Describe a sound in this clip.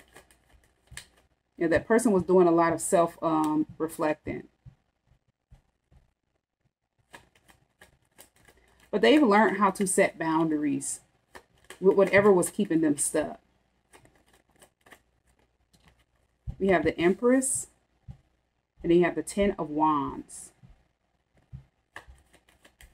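Playing cards riffle and slap as they are shuffled.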